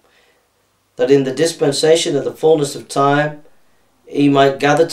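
A man reads aloud calmly, close by.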